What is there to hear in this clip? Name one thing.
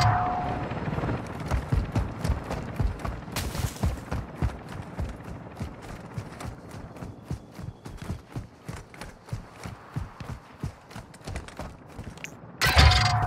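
Quick footsteps run over dry grass and dirt.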